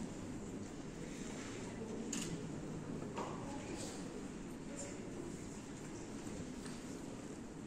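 A piano plays along with the choir.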